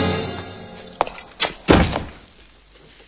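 A heavy wooden door thuds loudly.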